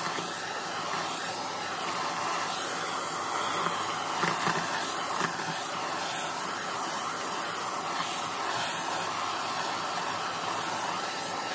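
A handheld vacuum cleaner whirs steadily, close by.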